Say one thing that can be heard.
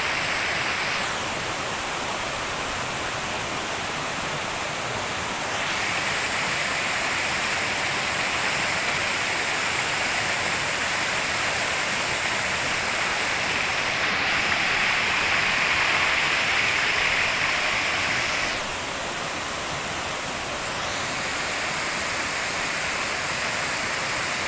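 A waterfall roars steadily as water crashes into a pool.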